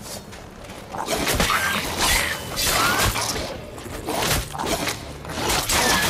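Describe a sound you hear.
A sword swings and clashes in a fight.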